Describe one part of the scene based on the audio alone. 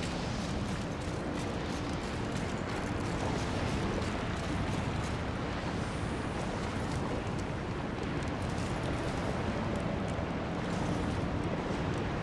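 Footsteps patter quickly across stone.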